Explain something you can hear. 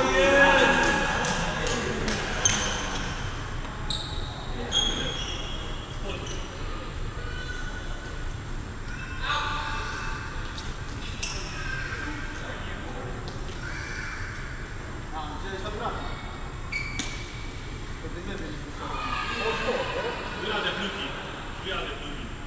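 Shoes squeak sharply on a sports floor.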